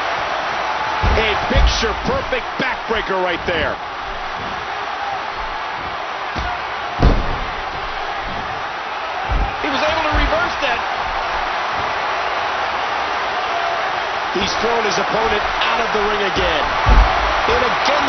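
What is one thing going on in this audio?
Heavy bodies slam down onto a wrestling mat with loud thuds.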